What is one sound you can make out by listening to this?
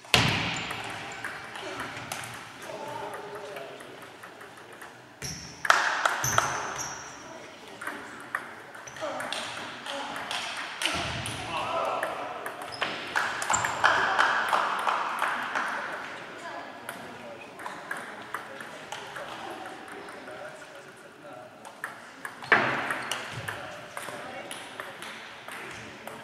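A ping-pong ball clicks sharply back and forth on paddles and a table.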